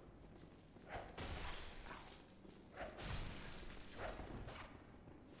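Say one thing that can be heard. Blades swish and clash in a fight.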